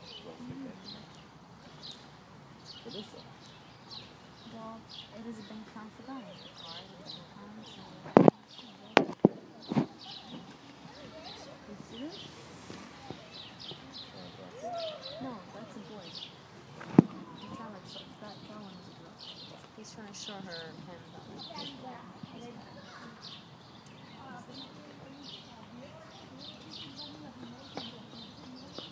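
A peacock rattles its fanned tail feathers.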